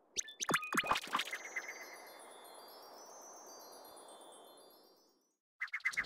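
A bright magical shimmer swells and fades away.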